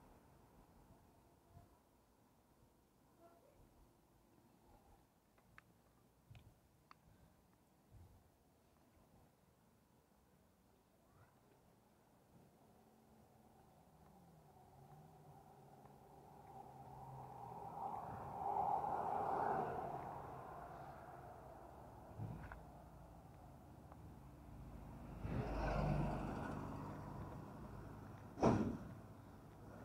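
Bicycle tyres roll over pavement and gravel.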